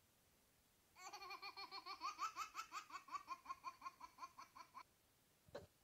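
A toy pig plays a cheerful electronic tune through a small speaker.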